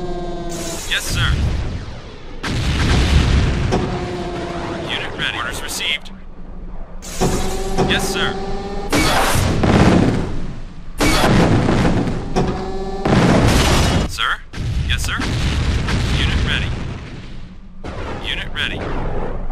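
Small explosions and gunfire crackle in a battle.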